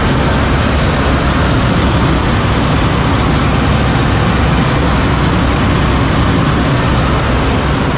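Drive belts and pulleys whir as they spin.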